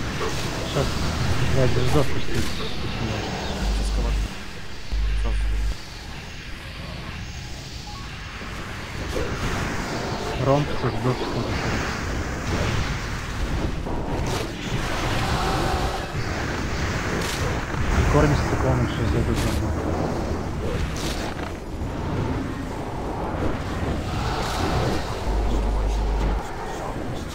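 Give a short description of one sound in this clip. Magic spells crackle and boom amid a fierce battle.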